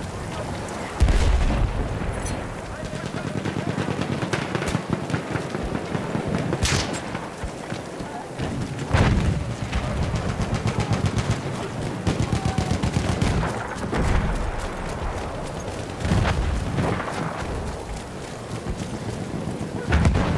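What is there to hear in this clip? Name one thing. Explosions boom nearby and far off.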